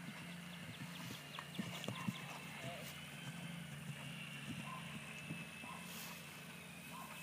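Horse hooves thud softly on grass as a horse canters.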